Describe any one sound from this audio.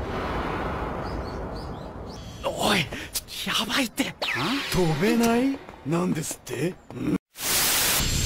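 Young men talk with animation.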